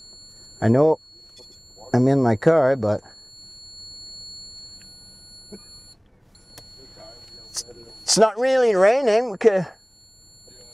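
A small electronic device gives off loud warbling tones in short bursts.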